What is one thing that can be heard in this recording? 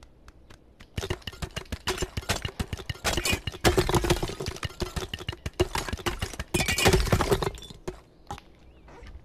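Stone blocks crack and clatter down as a wall crumbles.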